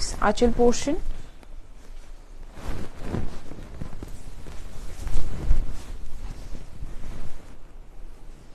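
Silk fabric rustles as a young woman swirls it.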